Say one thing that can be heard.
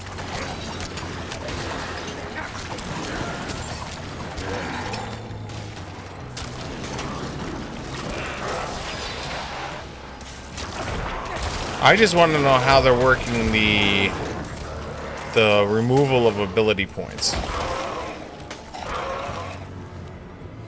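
Game combat sounds clash and thud.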